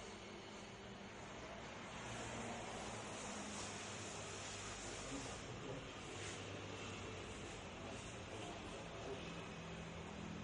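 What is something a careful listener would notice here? Feet shuffle on a hard floor.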